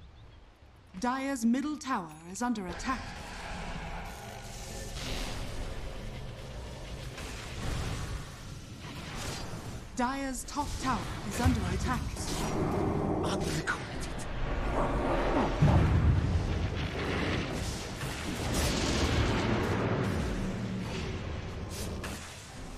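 Game spell effects crackle and boom during a fight.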